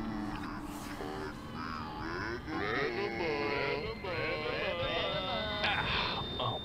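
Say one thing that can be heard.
A middle-aged man speaks with animation.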